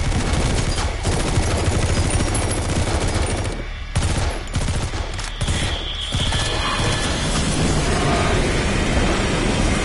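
Gunshots ring out amid a loud, rumbling battle.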